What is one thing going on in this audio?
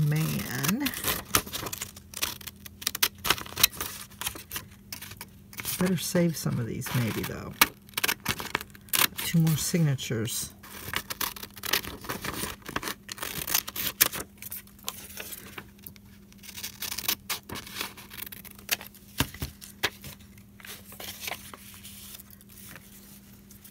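Sheets of paper rustle and slide as they are handled.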